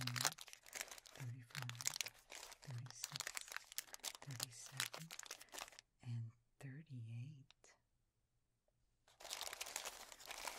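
Plastic candy wrappers crinkle and rustle under fingers, close up.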